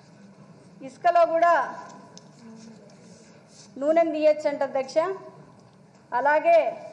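A young woman speaks with animation through a microphone in a large room.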